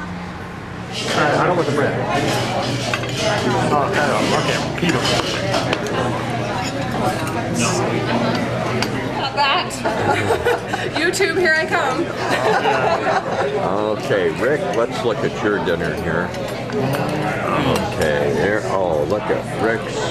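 A crowd of diners chatters and murmurs in a busy room.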